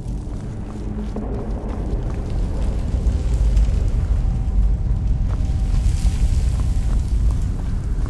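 Footsteps scuff slowly on a stone floor.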